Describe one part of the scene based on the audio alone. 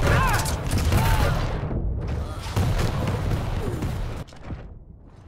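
Gunfire blasts and explosions boom.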